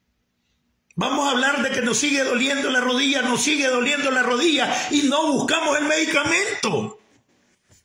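An elderly man sings loudly close to the microphone.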